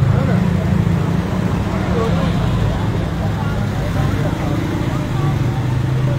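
A motorbike engine rumbles past.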